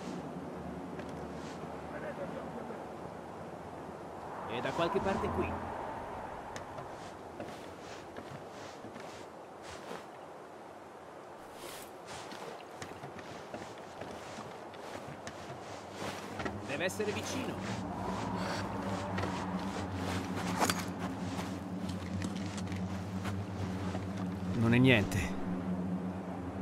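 Footsteps tread softly on wooden boards and stone.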